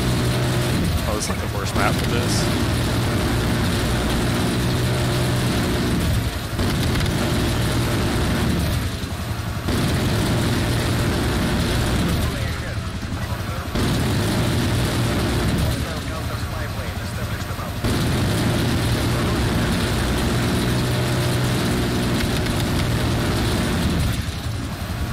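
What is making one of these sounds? A heavy machine gun fires in long rattling bursts.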